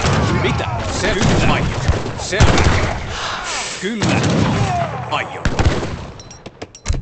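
Soldiers clash and fight in a noisy battle.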